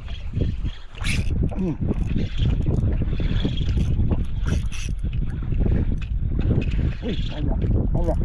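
A fishing reel clicks and whirs as it is cranked.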